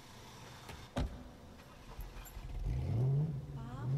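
A car engine rumbles low.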